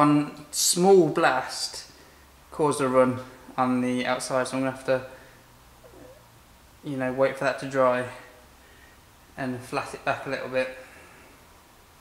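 A man speaks calmly and close by, explaining.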